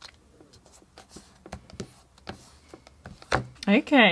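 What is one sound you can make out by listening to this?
Fingernails tap lightly on a plastic folder.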